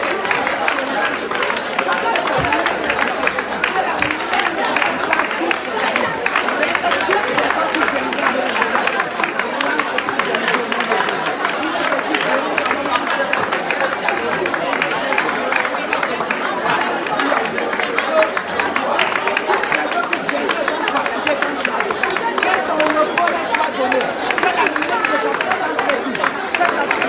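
A crowd of men and women sings together.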